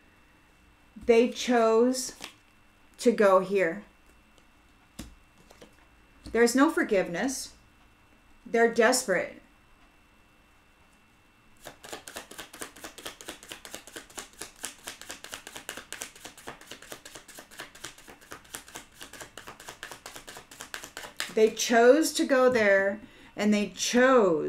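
A middle-aged woman speaks calmly, close to a microphone.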